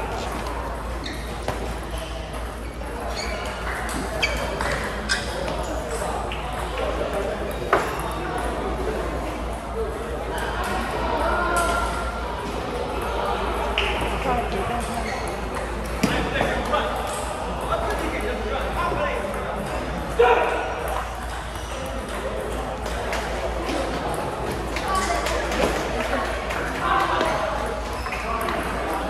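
Table tennis balls click sharply against paddles and tables in a large echoing hall.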